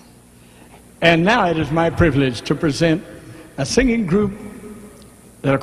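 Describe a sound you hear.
An elderly man speaks into a microphone with a lively, drawn-out voice.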